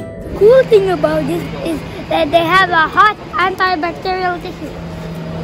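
A young boy exclaims with excitement close by.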